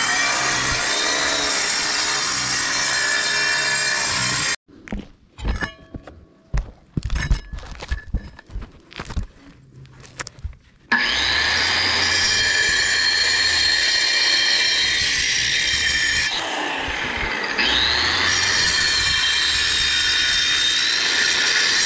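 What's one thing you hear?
An angle grinder whines loudly as it cuts into masonry.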